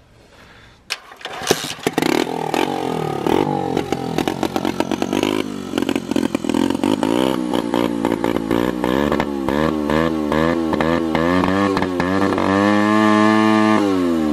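A small motorcycle engine starts and idles, revving up and down loudly.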